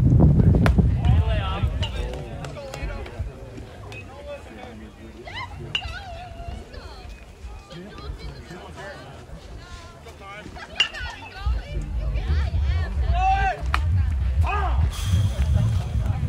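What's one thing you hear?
Young men call out in the distance across an open field.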